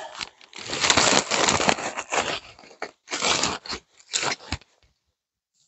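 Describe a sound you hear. A cloth bag rustles and crinkles as hands dig into it.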